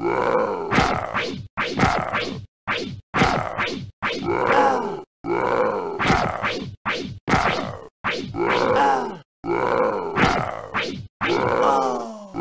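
Punches thud against a monster.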